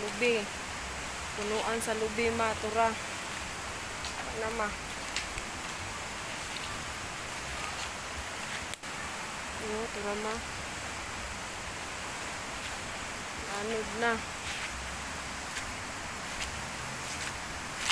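A light breeze rustles leaves outdoors.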